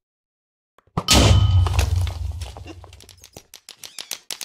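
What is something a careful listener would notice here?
A glass bottle shatters with a loud, booming burst.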